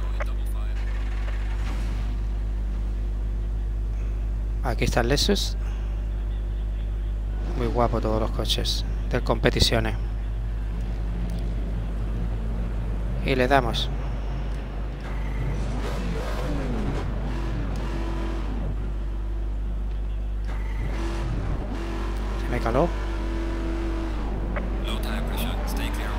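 Racing car engines roar and rev up in sharp bursts.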